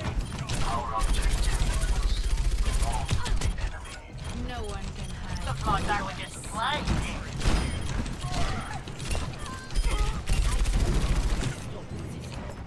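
Video game gunfire rattles in rapid bursts.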